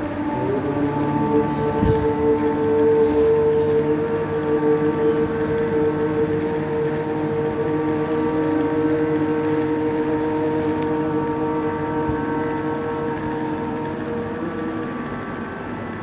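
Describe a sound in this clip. A conch shell blows one long, steady, droning note that slowly fades.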